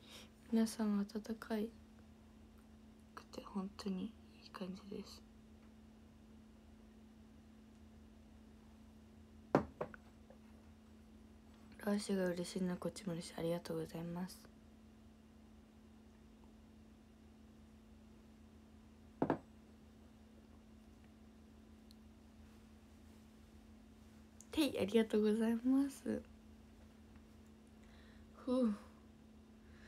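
A young woman speaks softly and close to a microphone, in short bursts.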